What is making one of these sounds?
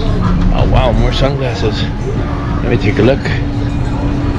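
A middle-aged man talks casually, close to the microphone.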